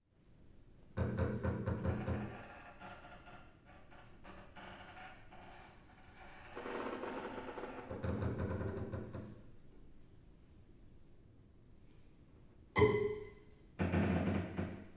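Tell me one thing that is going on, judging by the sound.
A double bass plays deep bowed notes.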